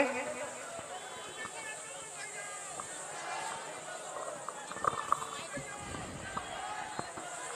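A woman speaks with animation into a microphone, heard through loudspeakers outdoors.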